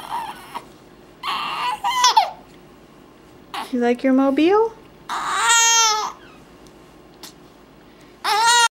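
A baby coos and squeals happily in short bursts, close by.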